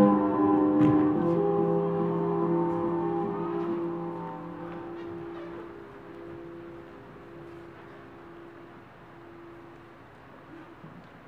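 Dancers' feet patter and brush softly on a stage floor.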